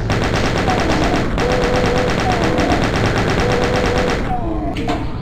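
A heavy gun fires in a rapid, rattling burst.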